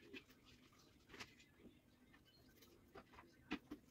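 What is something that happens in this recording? A brush dabs softly on a hard surface.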